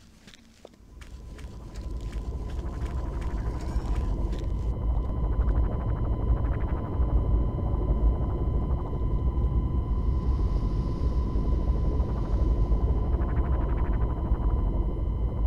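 Lava rumbles with a deep, steady roar.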